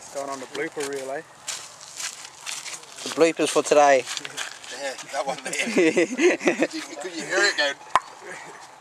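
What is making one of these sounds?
Several men talk and laugh loudly close by, outdoors.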